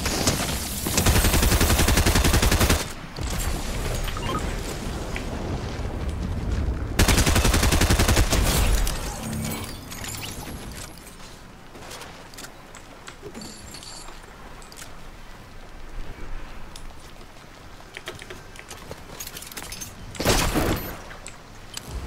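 Loud booming blasts burst out.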